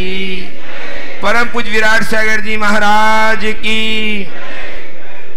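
An elderly man sings steady, drawn-out notes through a microphone.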